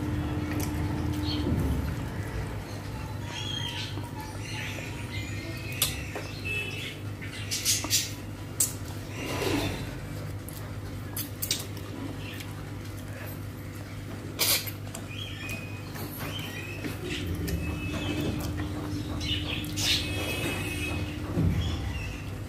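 Fingers squish and mix soft food on a plate.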